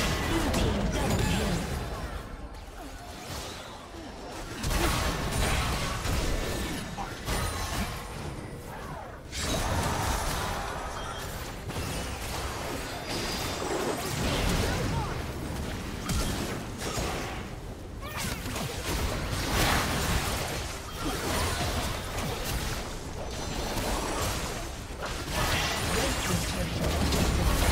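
Spell blasts, hits and magical effects crackle and boom throughout a hectic game battle.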